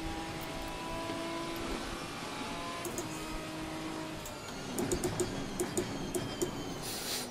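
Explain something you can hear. Rain spray hisses against the car.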